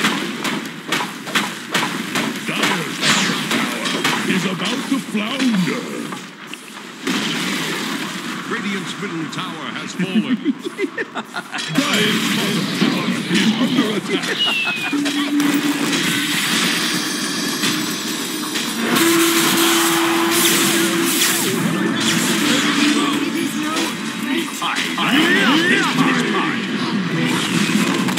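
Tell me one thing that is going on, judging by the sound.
Magic spells crackle and whoosh in a battle.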